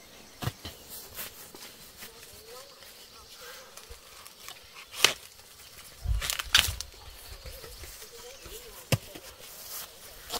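Leaves rustle as a boy moves through tall plants.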